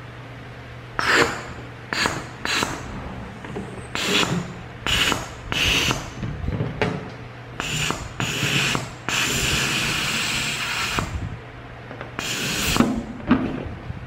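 Gas hisses in short bursts from a valve into a balloon.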